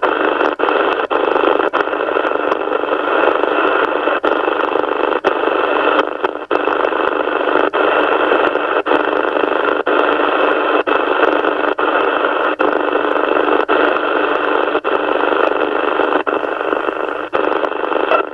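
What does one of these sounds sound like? Radio static hisses steadily through a small speaker.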